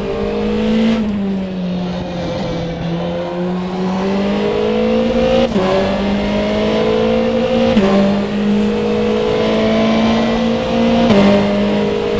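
A racing car engine shifts up through the gears with sharp jumps in pitch.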